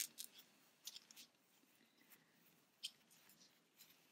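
Fibre stuffing rustles softly between fingers.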